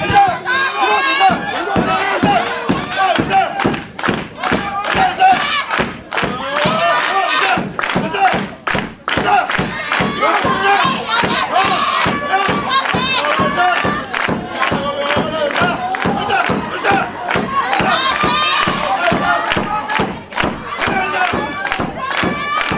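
A crowd claps in a fast steady rhythm.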